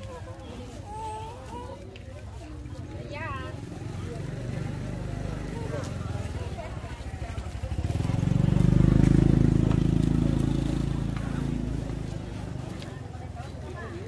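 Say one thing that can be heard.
Plastic bags rustle as vegetables are handled.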